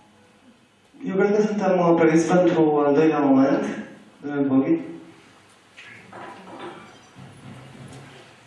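A man speaks into a microphone over a loudspeaker in a room with some echo.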